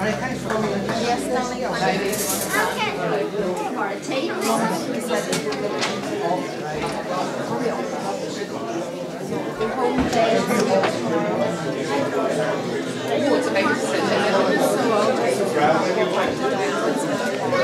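A crowd of adults and children chatters in a room.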